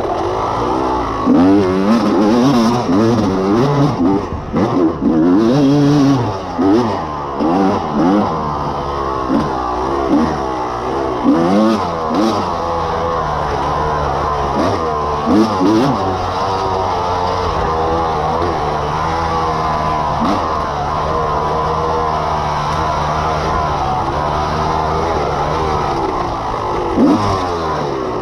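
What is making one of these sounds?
Tyres crunch and bump over a dirt trail.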